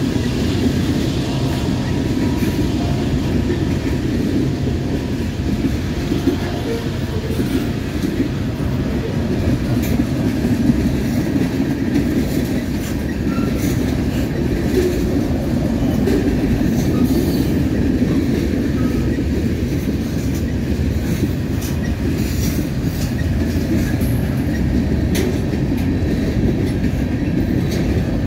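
A long freight train rumbles steadily past close by.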